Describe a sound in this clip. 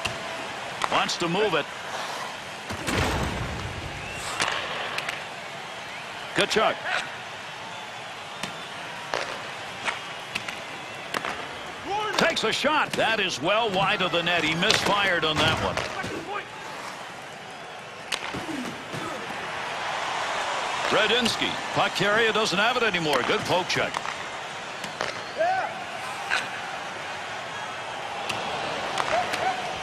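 Hockey sticks click sharply against a puck.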